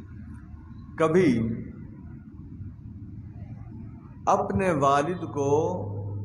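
A man speaks loudly through a microphone and loudspeaker, in drawn-out phrases.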